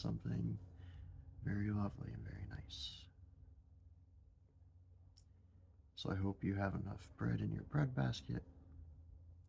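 A young man talks calmly and close to a microphone, with pauses.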